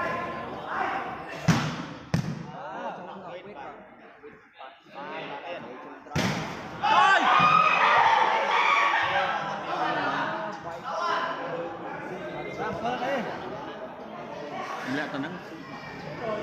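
A crowd of spectators talks and cheers loudly in a large echoing hall.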